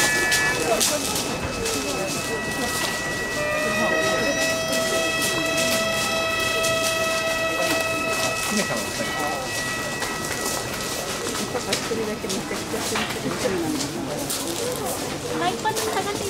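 Footsteps crunch on gravel as a group walks slowly.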